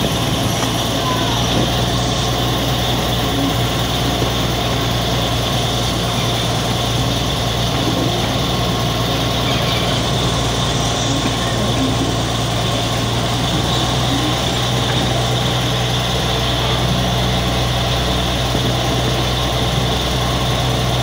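A train engine rumbles steadily close by.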